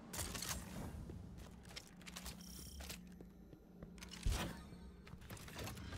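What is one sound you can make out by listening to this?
Footsteps crunch over loose rubble.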